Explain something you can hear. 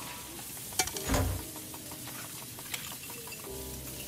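Metal latches click and slide into place.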